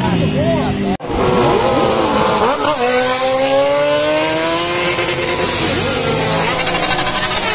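Motorcycles roar past with rising engine noise.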